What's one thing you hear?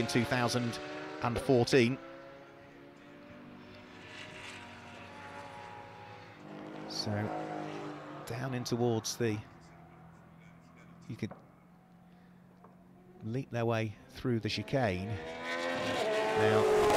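Racing car engines roar past at high speed.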